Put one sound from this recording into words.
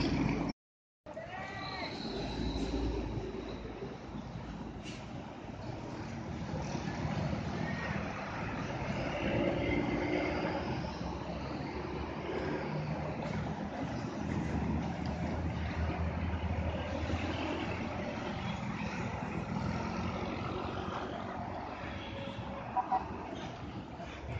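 A bus engine roars and drones up a hill.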